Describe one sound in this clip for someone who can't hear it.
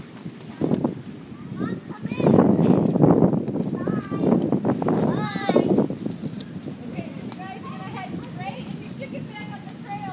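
Children shout and call out excitedly nearby, outdoors.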